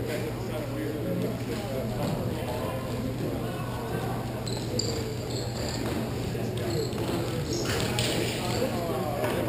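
Young players shout to each other across a large echoing hall.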